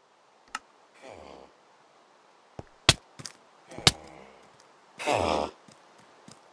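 A zombie villager groans in short, low rasping bursts.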